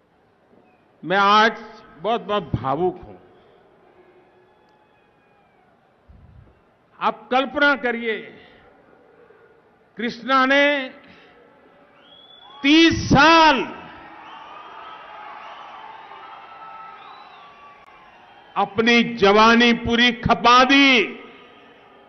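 An elderly man speaks forcefully into a microphone in short bursts, with echoing pauses between phrases.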